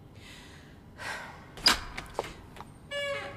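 A door lock clicks.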